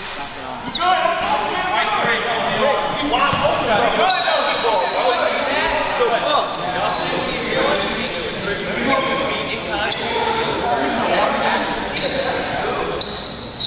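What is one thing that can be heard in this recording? Young men shout and call out in a large echoing gym.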